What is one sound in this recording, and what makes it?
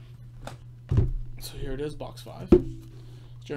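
A cardboard box knocks on a table.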